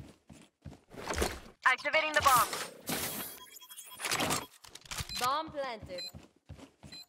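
An electronic device whirs and beeps while being installed.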